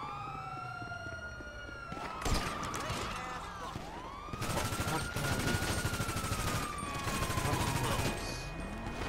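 A police siren wails and swoops up and down.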